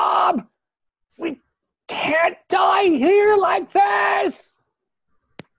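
A man speaks in a high, animated voice over an online call.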